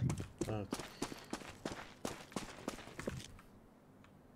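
Quick footsteps thud and tap on hard ground.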